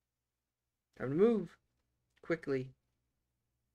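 A middle-aged man speaks briefly and calmly into a close microphone.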